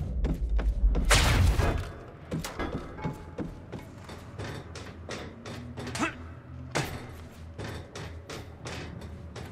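Quick footsteps run across a hard floor and clatter up metal stairs.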